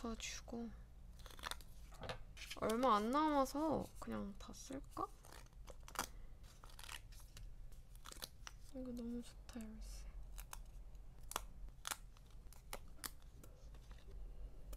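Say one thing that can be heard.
Stickers peel off a backing sheet with small clicks and ticks.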